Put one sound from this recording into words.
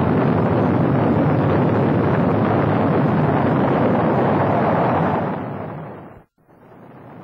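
The engines of a Saturn V rocket roar as it lifts off.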